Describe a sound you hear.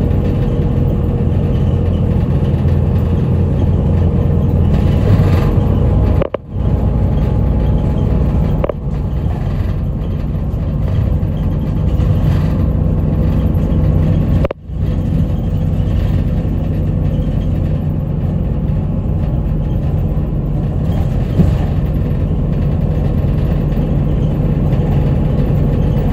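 A moving vehicle rumbles and hums steadily from inside.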